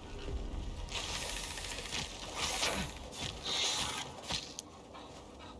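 Heavy blows strike a giant scorpion, with crunching thuds.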